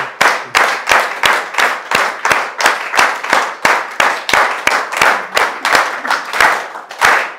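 A small audience claps in steady rhythm in a room.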